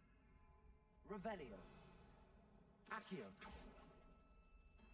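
A magic spell whooshes and chimes.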